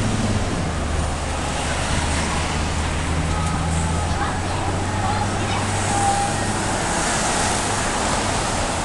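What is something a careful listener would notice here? Traffic rumbles steadily along a city street.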